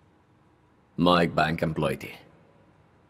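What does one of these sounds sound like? A second man speaks tensely close by.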